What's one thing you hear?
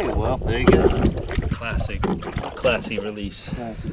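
Water splashes as a fish is let go.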